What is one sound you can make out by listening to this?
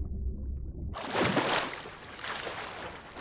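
Water splashes as a swimmer breaks the surface of the sea.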